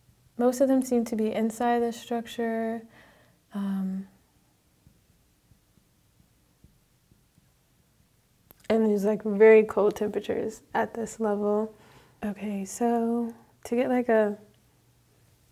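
A woman speaks calmly and clearly into a close microphone, with pauses.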